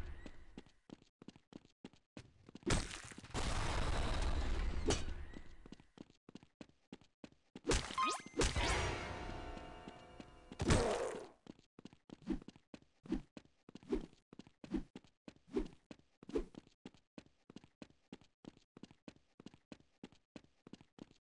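Footsteps tread quickly and steadily on hard ground.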